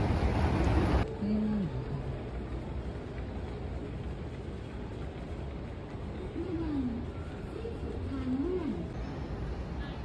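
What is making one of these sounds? Quiet murmur and hum fill a large echoing hall.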